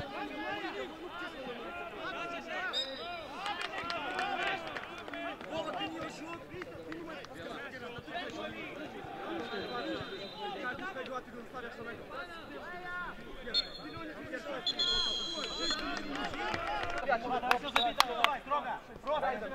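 Men shout and call out across an open field outdoors.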